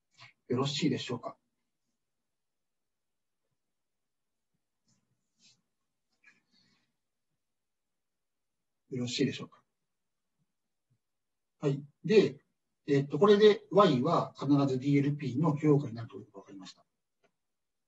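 A man speaks calmly into a microphone, heard as if over an online call, with long pauses.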